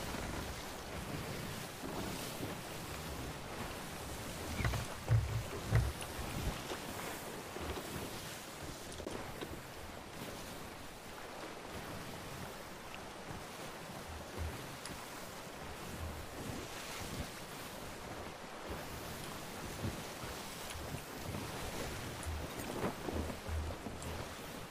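Ocean waves wash steadily around a sailing ship.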